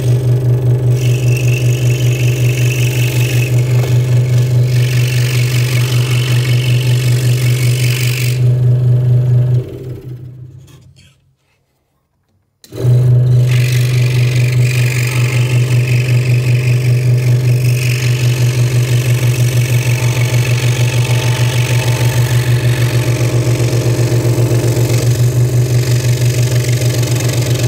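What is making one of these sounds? A scroll saw buzzes steadily as its blade cuts through thin wood.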